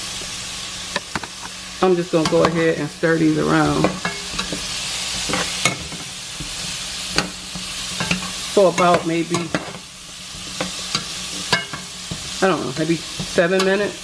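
A metal spatula scrapes and knocks against a pot.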